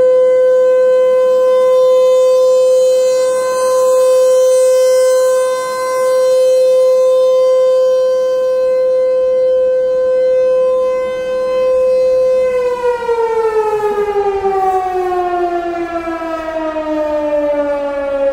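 An outdoor warning siren wails loudly and steadily, then slowly winds down in pitch.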